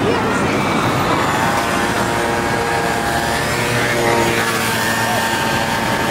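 A motor scooter engine hums close by.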